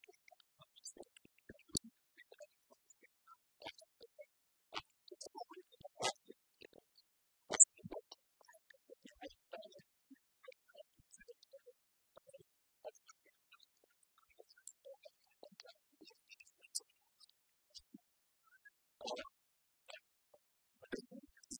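Keys clatter softly on laptop keyboards.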